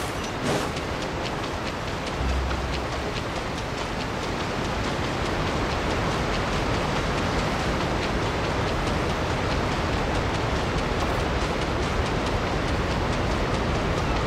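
Water splashes and swishes steadily as someone runs across it.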